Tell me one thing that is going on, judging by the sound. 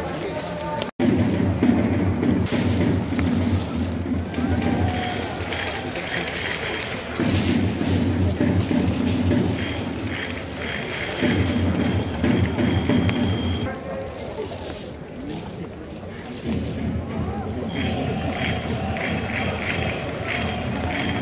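Fans chant and clap in rhythm.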